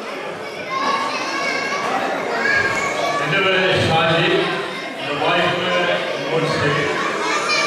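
A crowd of men, women and children chatters in a large echoing hall.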